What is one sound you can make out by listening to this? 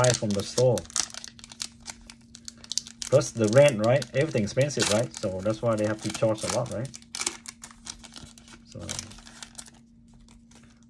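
Foil packets crinkle and rustle as hands handle them.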